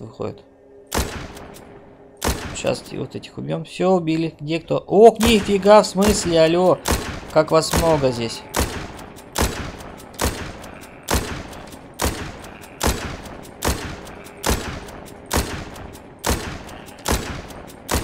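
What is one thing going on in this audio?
A rifle fires sharp shots again and again.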